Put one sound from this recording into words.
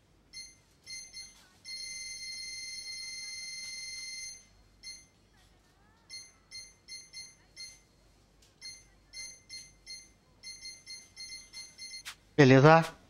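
Short electronic menu beeps tick repeatedly as a selection moves.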